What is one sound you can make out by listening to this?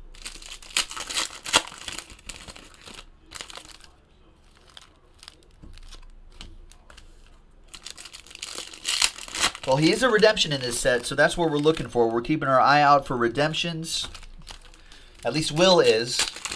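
Foil wrappers crinkle and tear as they are ripped open.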